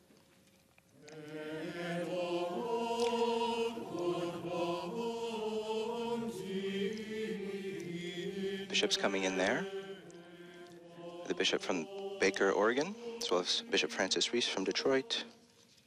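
A congregation sings a hymn together in a large echoing hall.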